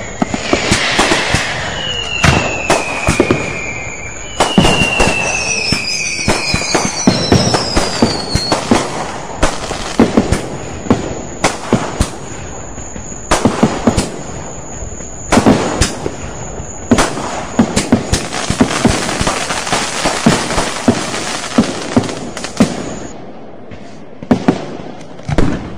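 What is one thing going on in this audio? Fireworks burst with loud bangs outdoors.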